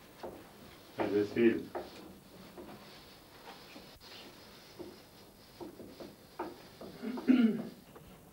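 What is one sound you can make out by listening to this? An elderly man speaks briefly nearby.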